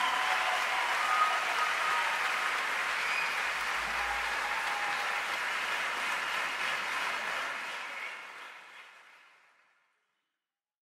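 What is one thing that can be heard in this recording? A large crowd applauds and cheers, then fades away.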